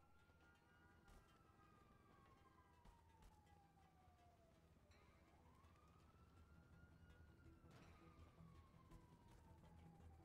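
Running footsteps thud on packed dirt.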